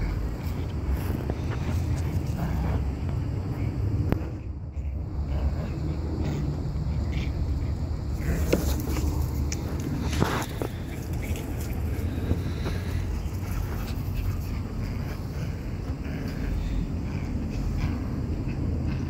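Small dogs growl playfully while tugging at each other.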